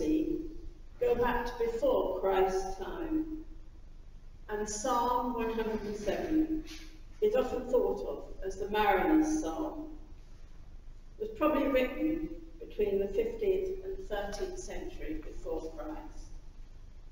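An elderly woman reads aloud in a large echoing hall.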